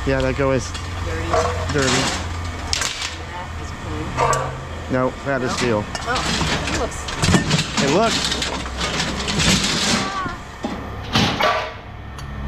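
Scrap metal clanks and rattles as it is handled.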